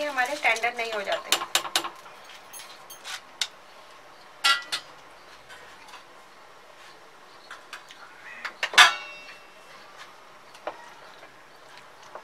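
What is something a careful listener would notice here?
A wooden spoon knocks and scrapes against a metal pot.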